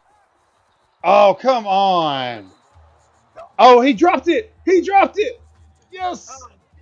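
A man shouts excitedly close to a microphone.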